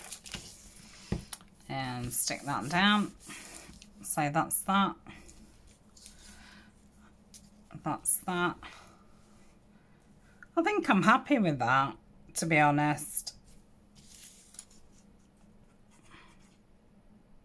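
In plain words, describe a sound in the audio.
Paper rustles softly as it is pressed and handled.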